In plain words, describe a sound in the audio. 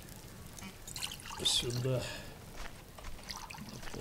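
Water sloshes in a metal bucket.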